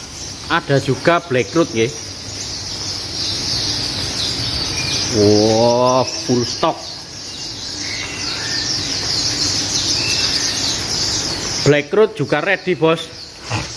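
Many small birds chirp and twitter steadily.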